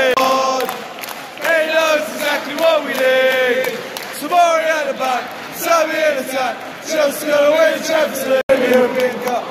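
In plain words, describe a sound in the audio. A stadium crowd sings a chant in unison.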